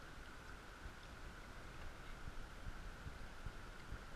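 Water splashes as a fish is lifted from a net.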